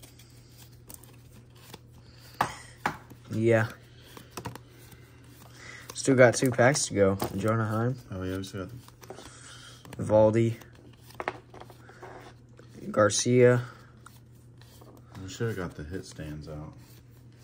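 Trading cards slide and rustle against each other in a hand.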